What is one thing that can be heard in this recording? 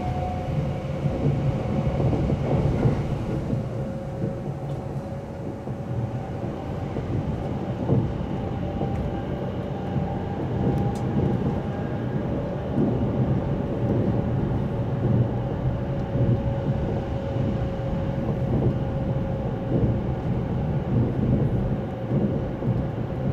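An electric motor whines at a steady pitch.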